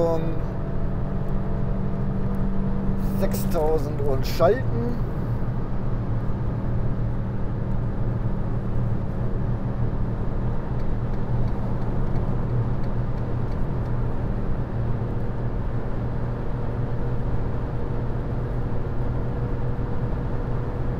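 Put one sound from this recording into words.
A small car engine hums steadily at speed.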